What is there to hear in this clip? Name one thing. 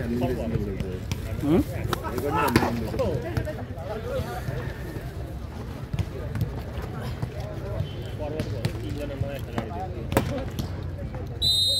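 A volleyball is struck with hands.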